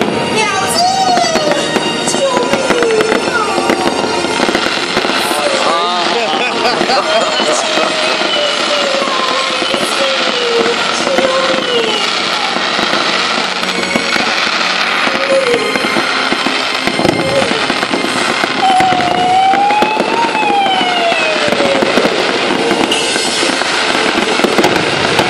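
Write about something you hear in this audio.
Fireworks crackle and pop rapidly nearby.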